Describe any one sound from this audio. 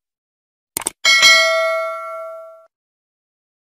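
A small bell chimes once and rings out.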